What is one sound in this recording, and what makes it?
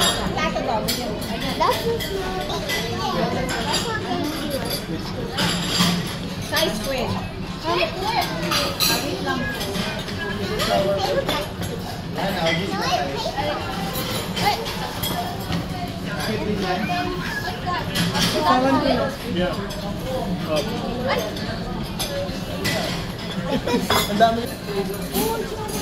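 Many people talk at once in a busy, echoing room.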